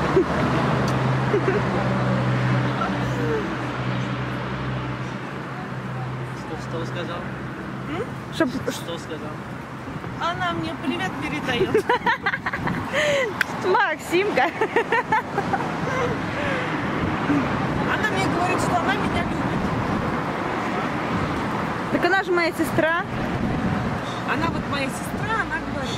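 A young woman talks casually close by.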